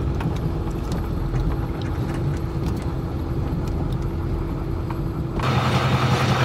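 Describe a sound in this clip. A car engine rumbles low while driving.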